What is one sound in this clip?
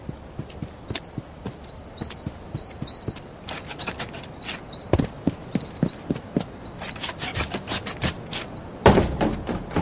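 Quick footsteps patter across hard ground.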